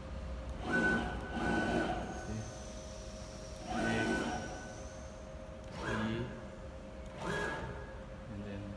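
An electric spindle motor hums steadily.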